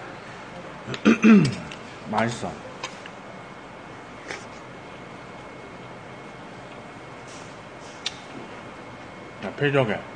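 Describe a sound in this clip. A young man speaks briefly and close by.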